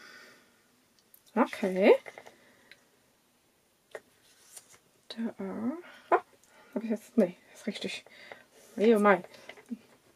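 Paper rustles and slides under a hand.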